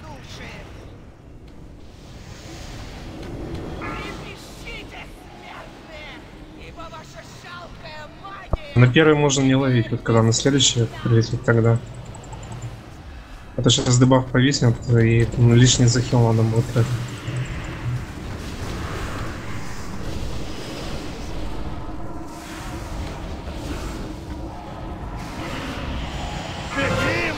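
Magic blasts and battle effects whoosh and crackle in a fight.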